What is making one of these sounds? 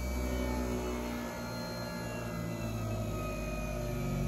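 A buffing wheel whirs as cloth is pressed against it.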